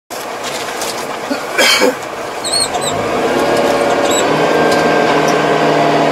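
A tractor engine rumbles steadily and rises in pitch.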